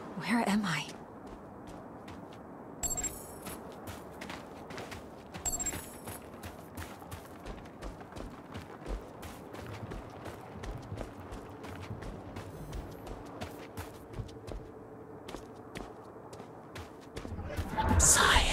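Quick footsteps crunch on stony ground.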